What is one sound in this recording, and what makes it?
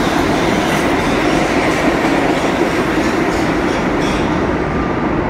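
A subway train rumbles and rattles past at speed.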